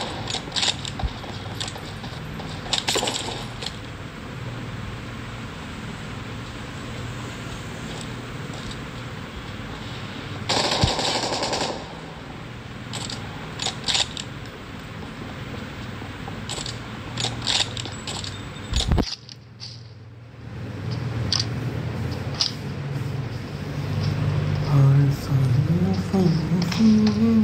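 Footsteps run over ground.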